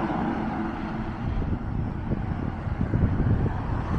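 A car drives past on a road nearby.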